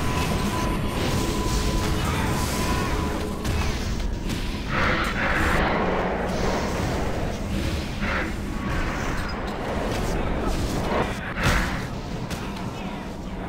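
Electric bolts zap and crackle.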